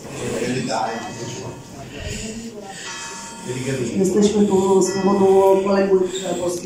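A crowd of teenagers chatters in a large echoing hall.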